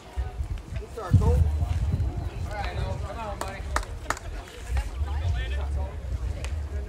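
Young men shout and call out across an open field in the distance.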